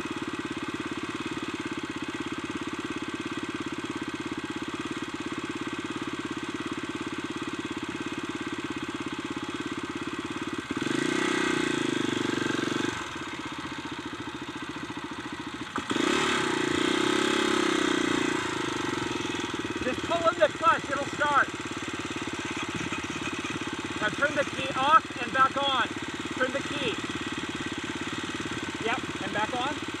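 A motorbike engine idles close by.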